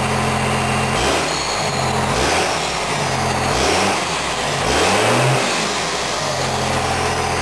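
A Cummins diesel pickup revs up and down through a straight-pipe exhaust stack.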